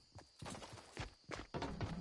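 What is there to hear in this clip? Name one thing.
Quick footsteps patter on hard ground in a game.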